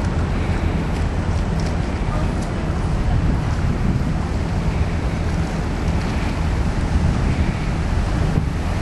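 Strong wind rumbles and buffets outdoors.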